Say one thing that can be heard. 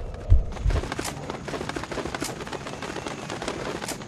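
Birds flap their wings as they take off.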